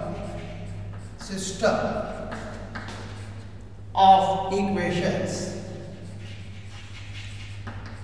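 An elderly man speaks calmly, as if lecturing, close to a microphone.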